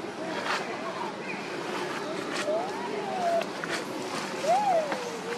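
A baby monkey squeaks with high, rising and falling calls.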